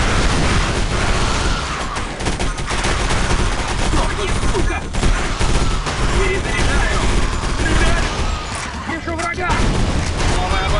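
Guns fire back from a short distance.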